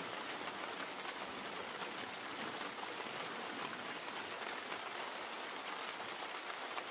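Raindrops patter on a roof.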